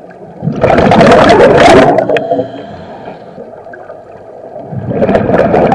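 Air bubbles rush and gurgle loudly underwater in bursts.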